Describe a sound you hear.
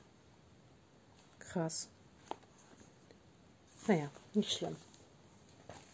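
A leather notebook cover flaps shut against paper pages.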